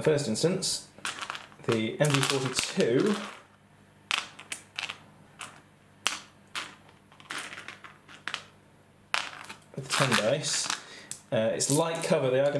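Dice clatter and roll across a tabletop.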